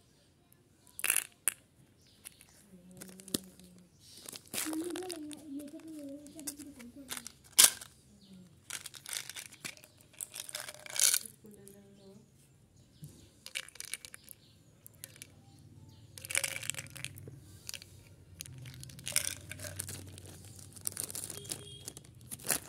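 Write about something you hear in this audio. Plastic wrappers crinkle and rustle in hands.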